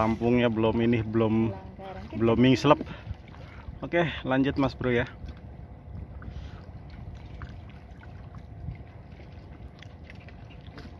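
Water laps gently against the shore.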